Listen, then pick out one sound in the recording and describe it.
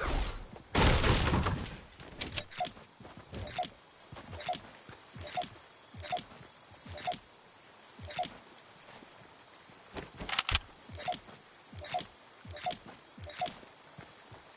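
A pickaxe strikes a hard surface again and again with sharp knocks.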